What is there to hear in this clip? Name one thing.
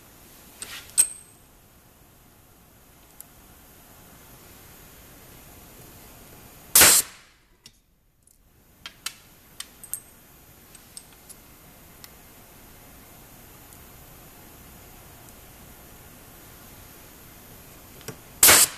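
Small metal parts click and clink against a hard surface.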